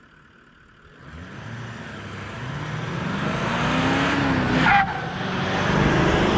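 A V8 turbo-diesel pickup accelerates hard toward the listener and roars past.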